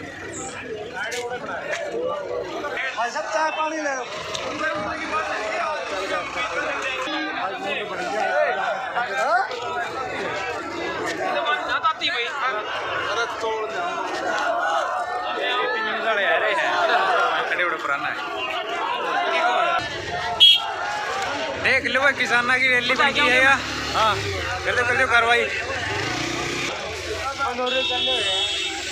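A large outdoor crowd of men chatters and shouts all around.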